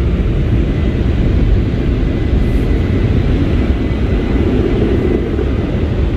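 Large brushes scrub and slap over a car's windscreen.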